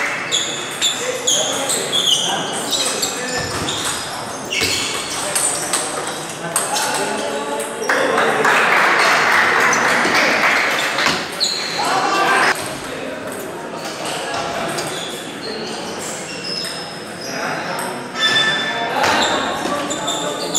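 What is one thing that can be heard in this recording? A crowd chatters and murmurs in an echoing hall.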